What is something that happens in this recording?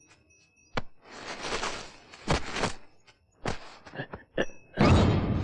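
A man groans and pants heavily nearby.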